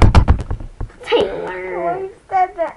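A young girl speaks playfully close by.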